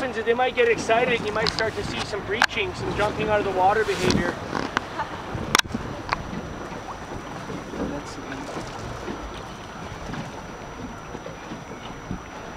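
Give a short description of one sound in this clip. Wind blows over choppy open water.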